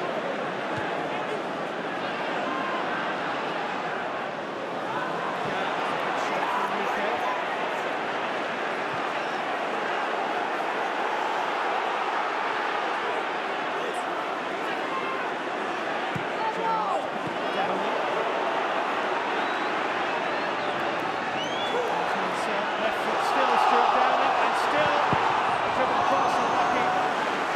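A large stadium crowd roars and chants steadily, swelling louder near the end.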